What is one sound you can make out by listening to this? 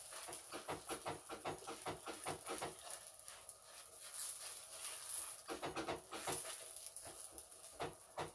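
Dough sizzles softly on a hot pan.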